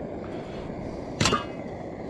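A metal lid clinks against a pot.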